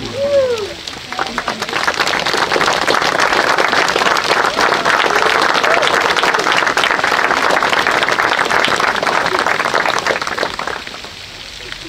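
A crowd of guests claps and cheers outdoors.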